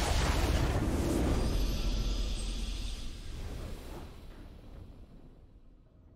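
A triumphant fanfare swells and fades out.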